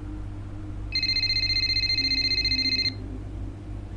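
A phone rings with a chirpy electronic tone.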